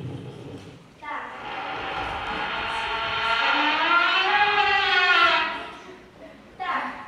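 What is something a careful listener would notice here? A young girl sings.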